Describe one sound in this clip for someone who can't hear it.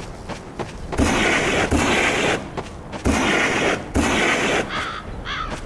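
Loud blasts roar and crackle nearby.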